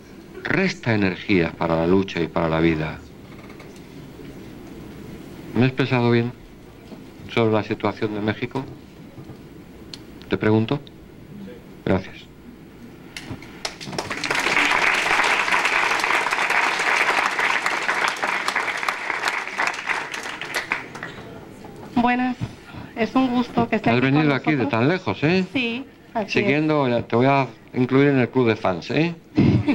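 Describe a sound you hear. A man speaks with animation into a microphone, heard through loudspeakers in a large room.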